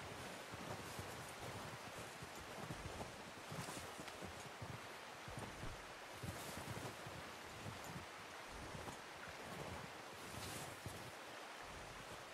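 A horse's hooves thud softly in snow.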